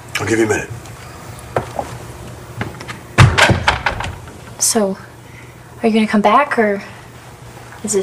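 A young woman speaks tensely at close range.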